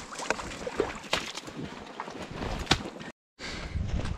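Boots squelch and splash through wet mud.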